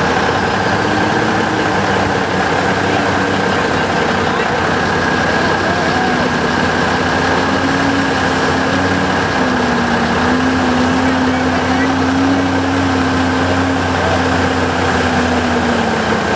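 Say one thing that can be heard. Mud splashes and sloshes under truck tyres.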